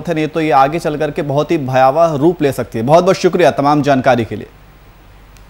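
A man speaks steadily into a microphone like a news presenter.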